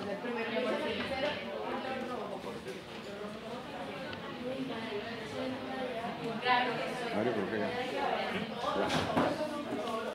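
A middle-aged man speaks calmly close by.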